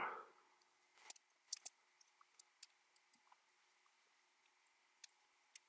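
Small plastic parts click and tap softly as they are handled.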